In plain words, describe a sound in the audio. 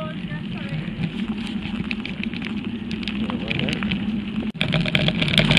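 Bicycle tyres roll and crunch steadily over a gravel path.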